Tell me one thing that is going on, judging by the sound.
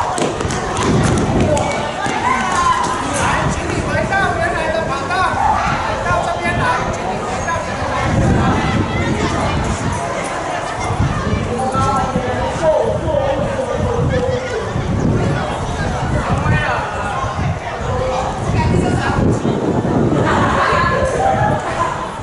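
A crowd of children and young people chatter nearby outdoors.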